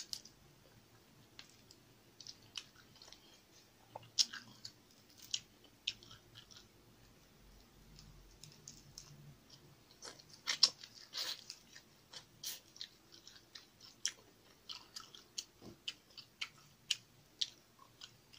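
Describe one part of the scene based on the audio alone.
A young woman chews food noisily and smacks her lips close to a microphone.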